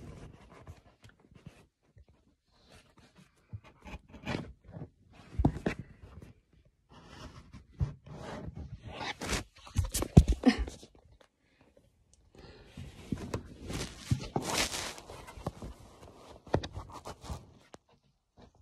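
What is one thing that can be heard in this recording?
A cat's fur brushes and rubs right against the microphone.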